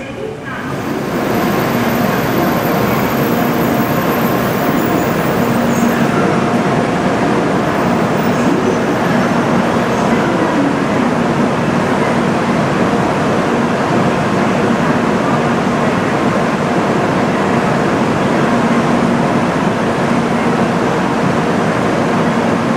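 A Shinkansen high-speed train pulls slowly out of a station.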